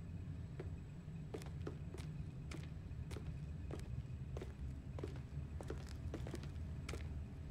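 Footsteps tread softly on a wooden floor.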